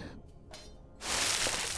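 Water splashes loudly as a swimmer climbs out.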